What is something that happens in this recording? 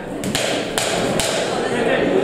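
Gloves thud sharply as boxers trade punches.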